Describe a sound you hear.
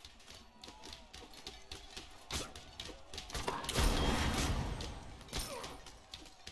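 Game sound effects of weapons clashing and fiery blasts play in bursts.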